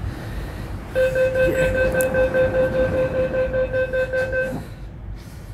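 A train's door warning beeps rapidly and steadily.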